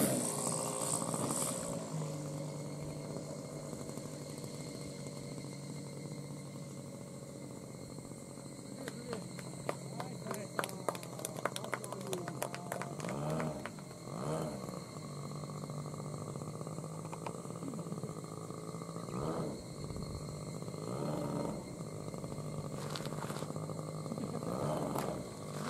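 A model plane's small engine buzzes steadily outdoors.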